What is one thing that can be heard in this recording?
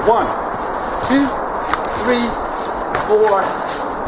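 Footsteps crunch over moss and snow.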